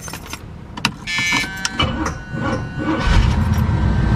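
A car engine cranks with a starter motor whirring.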